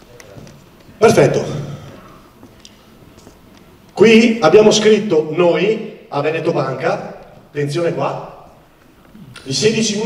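A man speaks into a microphone, amplified through loudspeakers in a large echoing hall.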